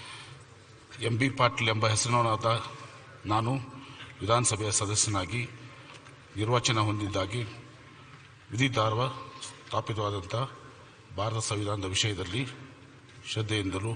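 A middle-aged man reads out an oath through a microphone.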